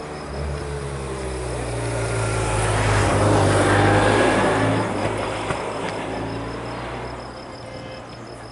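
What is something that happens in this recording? A motorcycle engine drones as it passes close by and fades.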